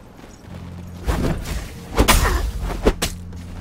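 Sharp weapon hits clash and ring out.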